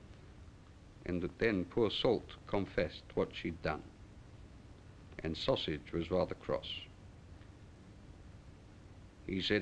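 A middle-aged man speaks calmly and deliberately, close by.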